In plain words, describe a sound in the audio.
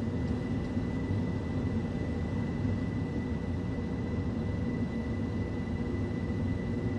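A train rumbles steadily along the track, heard from inside a carriage.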